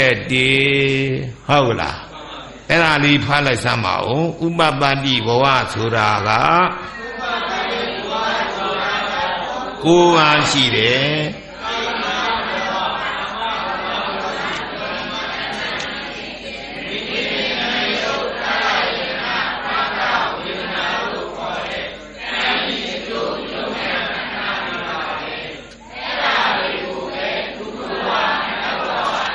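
An elderly man chants and reads aloud into a microphone, heard through a loudspeaker.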